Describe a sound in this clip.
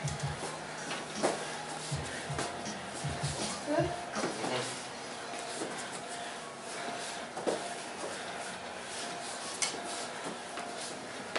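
Metal walking frames clatter and knock on the floor.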